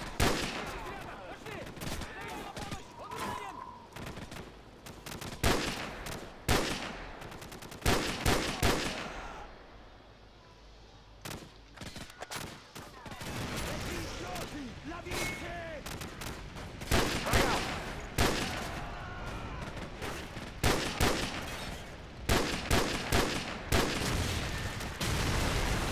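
Rifle shots crack loudly, one after another, with echoes.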